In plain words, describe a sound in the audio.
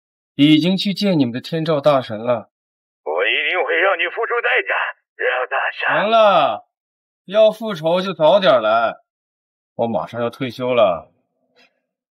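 A man talks calmly into a phone, close by.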